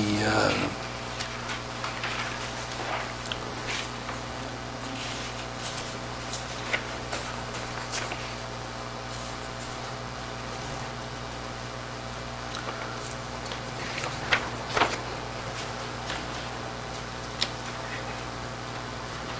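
Papers rustle and shuffle on a table.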